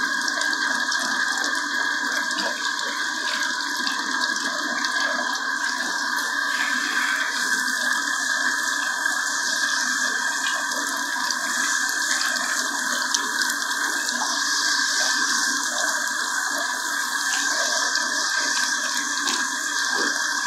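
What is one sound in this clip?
A handheld shower head sprays water onto hair and skin.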